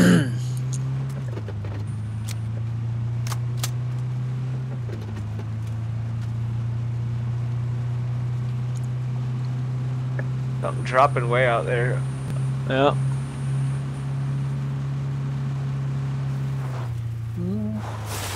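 A motorbike engine hums steadily as it rides along a road.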